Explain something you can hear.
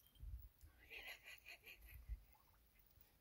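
Hens cluck and squawk nearby.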